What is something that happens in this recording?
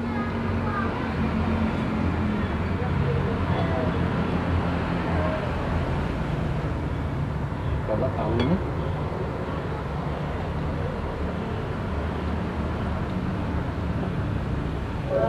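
Spoons scrape and clink on plates.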